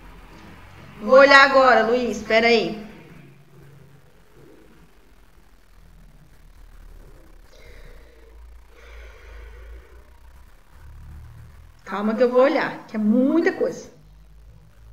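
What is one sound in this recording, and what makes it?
A woman speaks briefly and calmly through a microphone, with long pauses.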